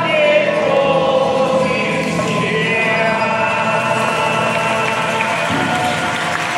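A choir sings along.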